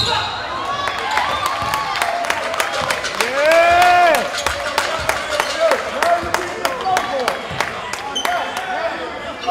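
A basketball bounces on the court floor.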